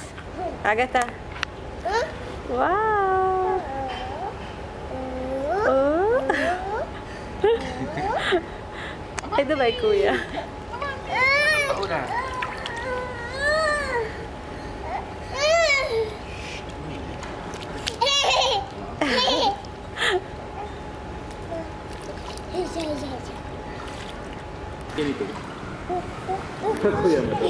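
A young girl chatters and squeals close by.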